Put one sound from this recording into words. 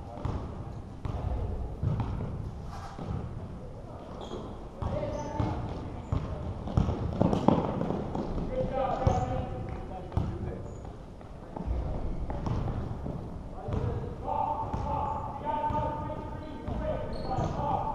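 A basketball bounces on a hardwood court in a large echoing gym.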